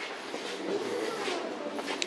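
Flip-flops slap on a hard floor.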